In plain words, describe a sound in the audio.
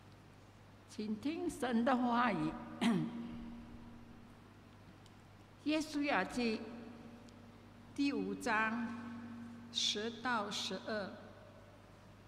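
A woman reads aloud into a microphone, heard through a loudspeaker in an echoing hall.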